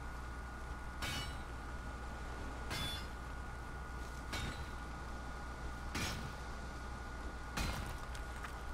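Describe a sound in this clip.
A pickaxe strikes rock with sharp metallic clinks.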